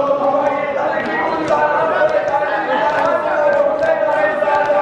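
Hands beat on chests in a steady rhythm.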